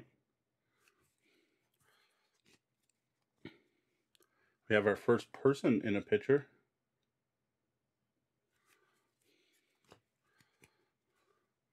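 Playing cards rustle and click as they are shuffled and handled.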